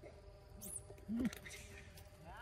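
Monkeys scuffle and squeal briefly close by.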